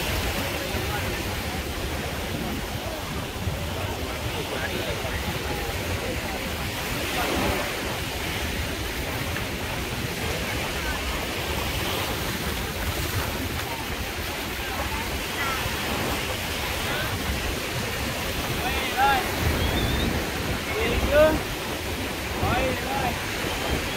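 Small waves wash gently onto the shore.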